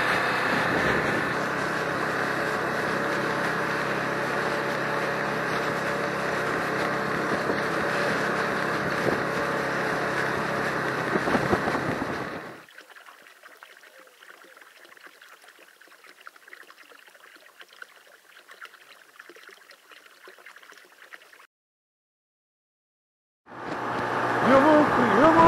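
Wind buffets loudly against a rider.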